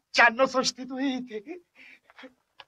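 A young man laughs heartily up close.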